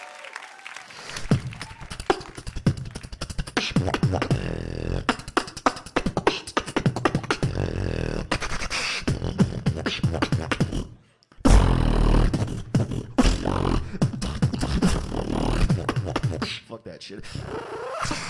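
A young man beatboxes into a microphone, loud through speakers.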